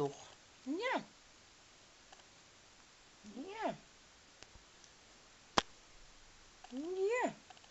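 A dog whines in short, high rising and falling cries close by.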